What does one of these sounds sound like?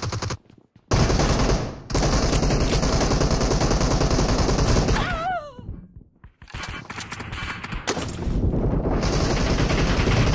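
Rapid gunshots fire in loud, fast bursts.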